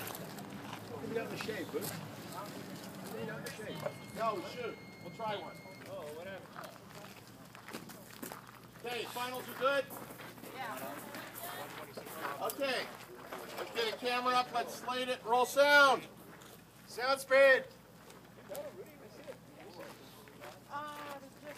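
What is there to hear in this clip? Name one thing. Several men talk with animation nearby outdoors.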